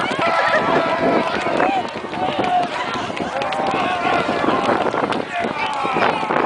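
Many children shout and squeal excitedly outdoors.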